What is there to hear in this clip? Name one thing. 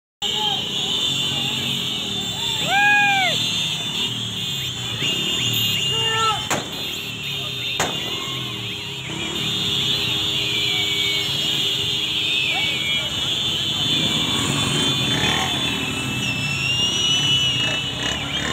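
Motorcycle horns honk repeatedly.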